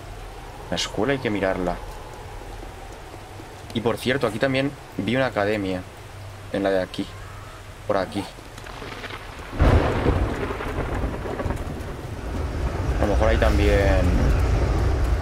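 A young man talks with animation close to a microphone, in short bursts.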